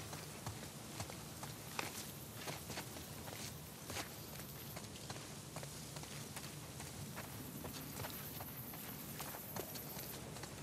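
Footsteps crunch and rustle through undergrowth at a steady walking pace.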